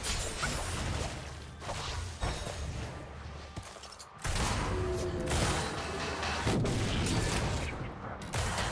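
Spell effects whoosh and crackle in a busy fight.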